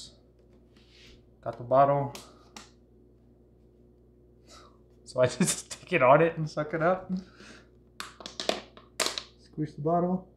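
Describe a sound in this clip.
A plastic bottle crinkles in a man's hands.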